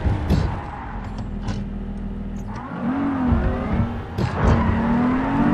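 A car engine hums steadily, then revs up and down.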